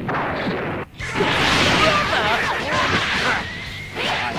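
An energy blast whooshes and roars loudly.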